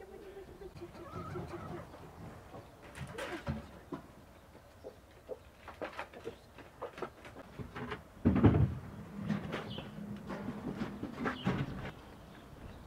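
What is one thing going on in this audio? Chickens cluck and peck nearby.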